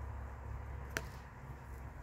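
A small block taps down onto a padded surface.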